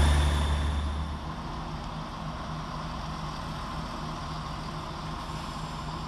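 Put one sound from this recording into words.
A train hums quietly in the distance.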